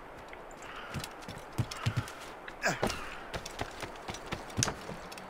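Footsteps thud quickly on wood and roof tiles.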